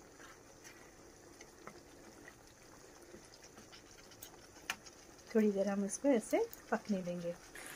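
A wooden spatula scrapes and stirs in a pan.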